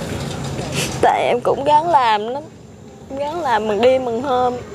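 A young woman sobs and wails in a wavering voice close by.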